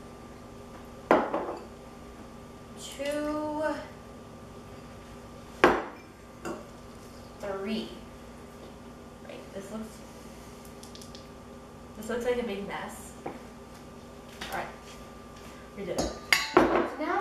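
A bowl clinks on a countertop.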